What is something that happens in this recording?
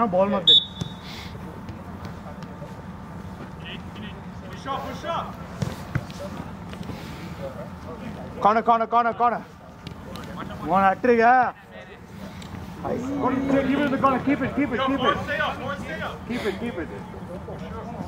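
Young men shout to each other outdoors, some distance away.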